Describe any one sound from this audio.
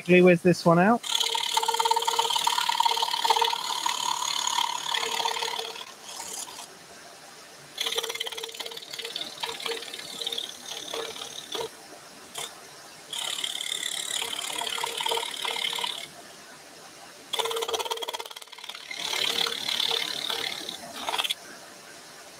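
A scroll saw buzzes as it cuts through thin wood in short bursts.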